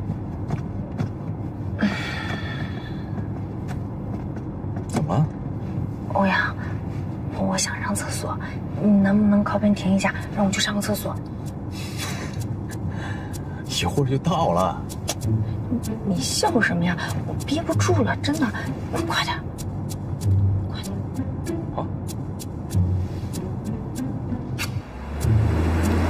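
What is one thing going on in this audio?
A car engine hums steadily inside a car.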